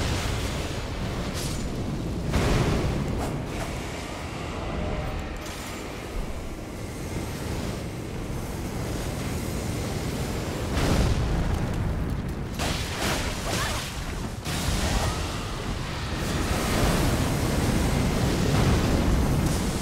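Fiery explosions roar and crackle.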